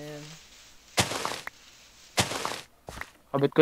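A shovel digs into dirt with short crunching thuds.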